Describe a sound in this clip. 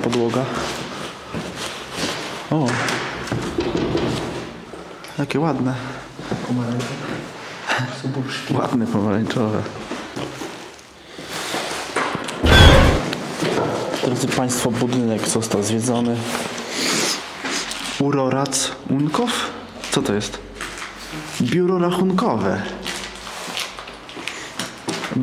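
A young man talks excitedly close by.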